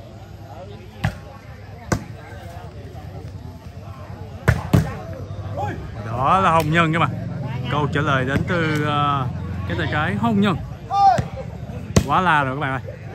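A volleyball is struck by hand outdoors.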